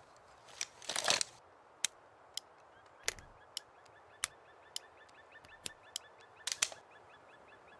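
Revolver cartridges click into a cylinder one by one.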